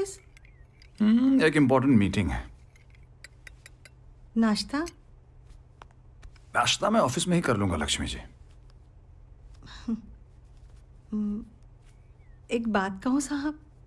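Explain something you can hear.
A woman speaks warmly nearby.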